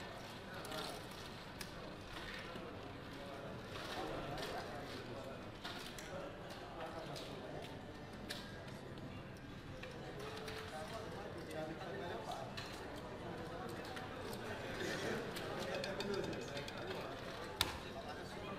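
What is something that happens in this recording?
Casino chips clack as a dealer stacks and sorts them.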